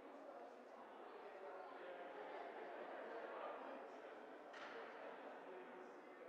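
Many people chat quietly in a large echoing hall.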